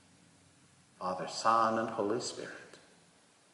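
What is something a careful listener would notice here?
An older man speaks through a microphone.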